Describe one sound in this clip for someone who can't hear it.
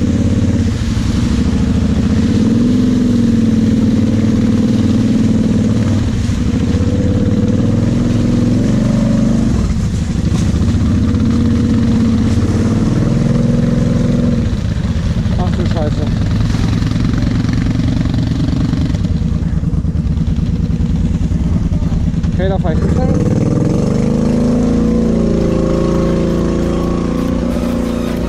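A quad bike engine drones loudly up close, revving up and down as it churns through mud.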